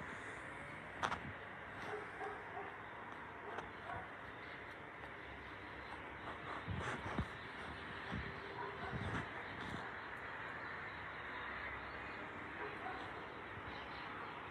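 Fingers rustle softly through a cat's fur.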